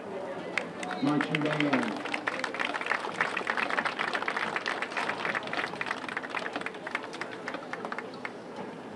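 A crowd of people chatters and calls out nearby, outdoors.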